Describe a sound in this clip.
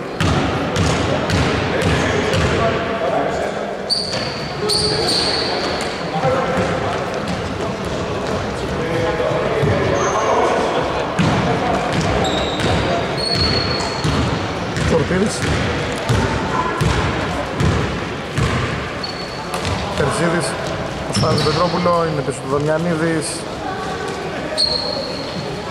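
Men shout and call out across an echoing hall.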